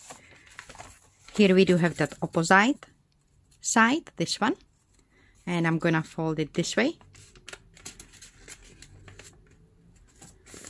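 Newspaper rustles and crinkles as it is folded by hand.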